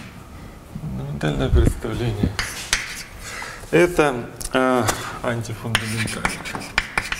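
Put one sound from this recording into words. A young man speaks calmly.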